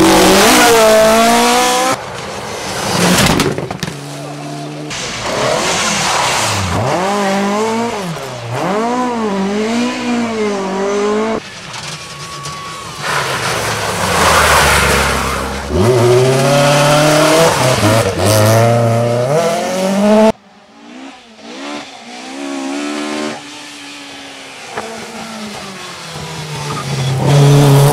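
Rally car engines rev hard and roar past, shifting gears.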